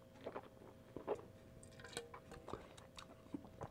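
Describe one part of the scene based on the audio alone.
A metal container clinks as it is handled.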